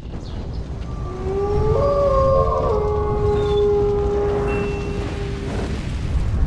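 A wolf howls long and loud, then fades.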